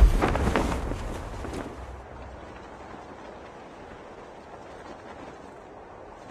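Wind rushes past loudly, then settles to a soft steady whoosh.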